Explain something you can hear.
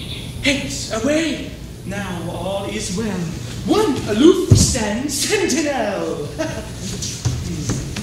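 A chorus of young women sings together on a stage.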